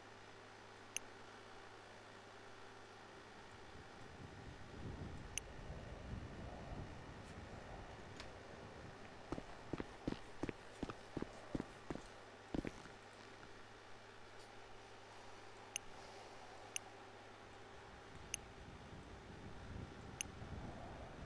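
Soft clicks sound now and then as items are moved.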